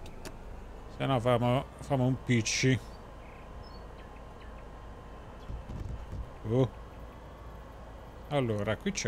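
A man talks calmly into a microphone, close by.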